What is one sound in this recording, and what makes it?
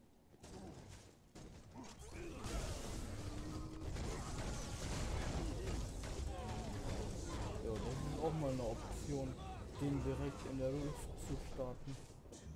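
Spell blasts and combat effects crackle and boom.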